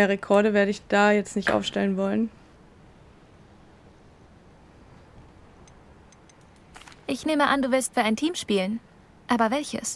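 A young woman speaks calmly and clearly, close up.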